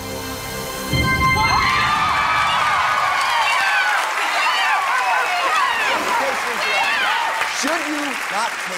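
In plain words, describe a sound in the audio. A large crowd cheers and screams with excitement.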